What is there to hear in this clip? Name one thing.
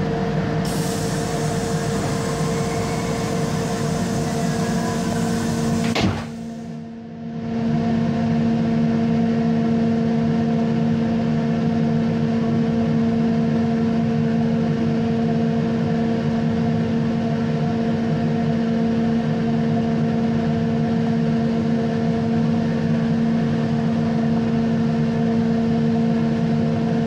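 Train wheels clatter rhythmically over the rails.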